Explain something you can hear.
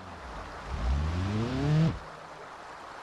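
A car engine revs as the car wades through deep water.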